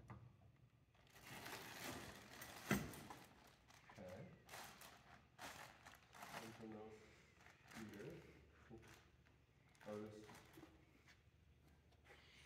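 Hard plastic clunks and rattles as a machine case is handled.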